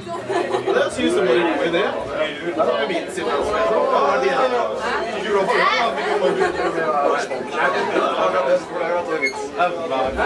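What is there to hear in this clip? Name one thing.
An electric bass guitar plays loudly through amplifiers.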